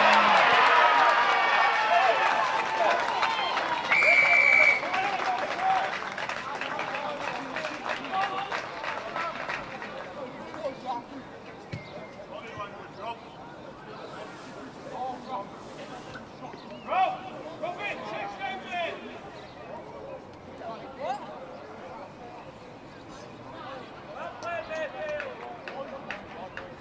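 Young men shout to one another across an open field in the distance.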